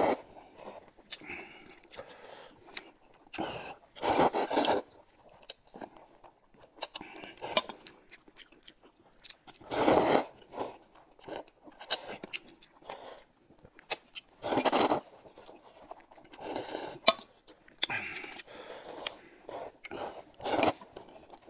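A young woman slurps noodles loudly, close by.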